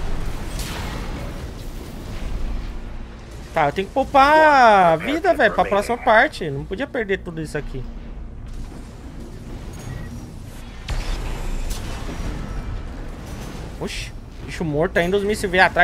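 Explosions and gunfire boom from a video game.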